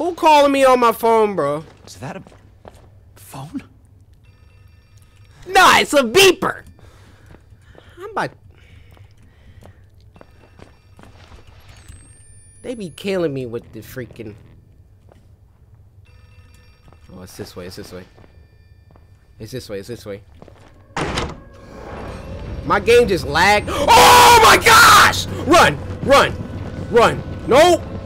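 A young man talks and exclaims with animation into a close microphone.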